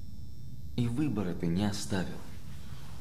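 A man speaks quietly and calmly up close.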